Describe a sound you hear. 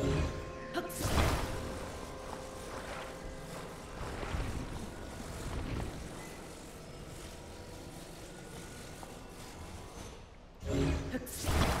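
A magical whoosh surges loudly.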